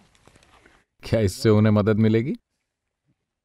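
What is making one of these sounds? An elderly man speaks slowly in a deep voice, close by.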